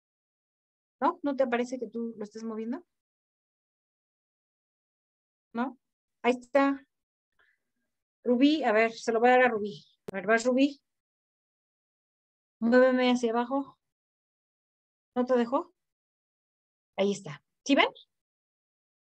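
A young woman speaks with animation into a close microphone, in short bursts with pauses.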